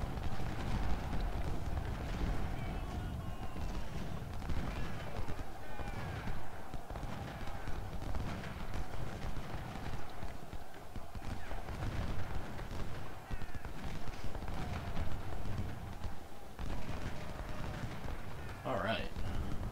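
Musket fire crackles in a distant battle.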